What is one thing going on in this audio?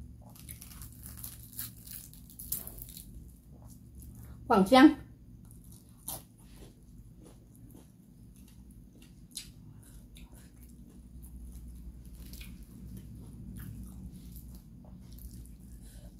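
Fish bones and crisp skin crackle as fingers pull them apart.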